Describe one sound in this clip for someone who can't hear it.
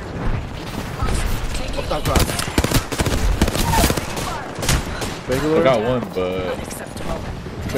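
Explosions boom and crackle with roaring fire.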